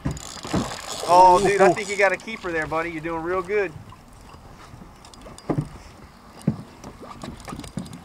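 Water laps and splashes against the side of a boat.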